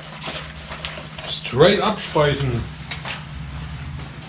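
Cardboard rustles and crinkles as a box is handled.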